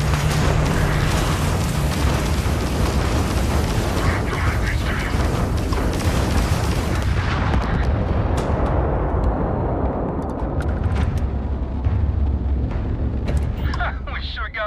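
A spaceship engine roars loudly and steadily.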